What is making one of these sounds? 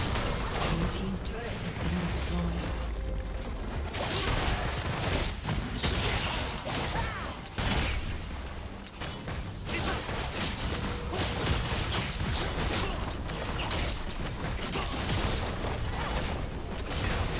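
Game spell effects crackle and clash during a fight.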